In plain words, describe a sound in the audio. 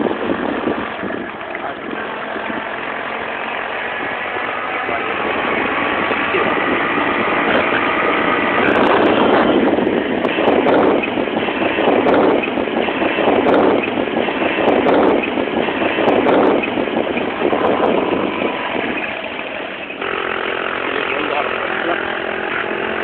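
A motorcycle engine drones steadily up close.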